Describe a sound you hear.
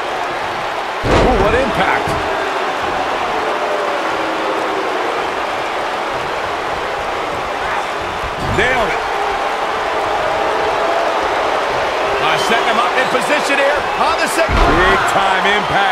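A body slams heavily onto a wrestling ring mat with a deep thud.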